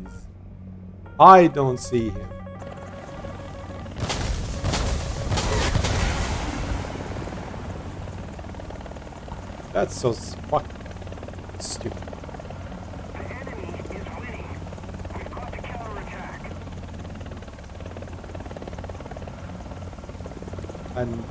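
A helicopter's rotor thumps steadily in flight.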